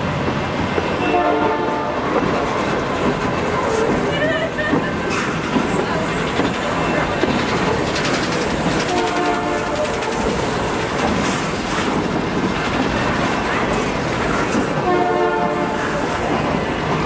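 Train wheels squeal against the rails now and then.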